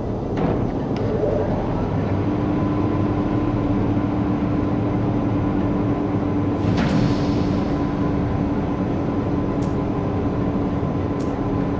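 A spaceship engine hums and rumbles steadily.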